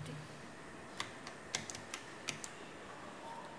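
Buttons click on a control panel.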